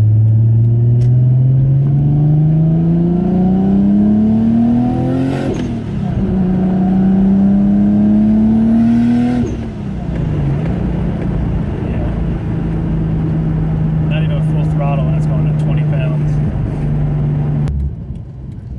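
A car engine revs up hard, climbing through the gears with quick shifts, then holds a steady drone.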